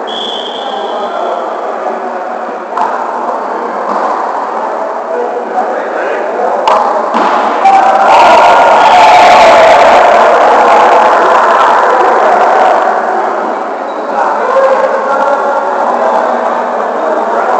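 Adult men and women talk and call out across a large echoing hall.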